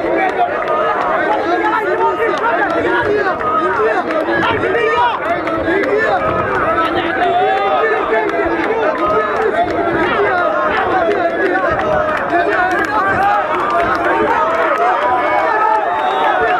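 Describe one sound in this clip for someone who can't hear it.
A crowd shouts and cheers loudly throughout.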